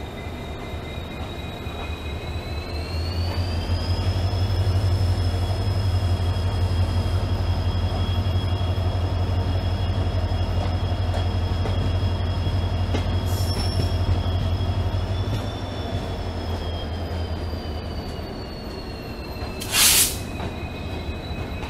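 A diesel locomotive engine rumbles steadily nearby, rising and then easing off.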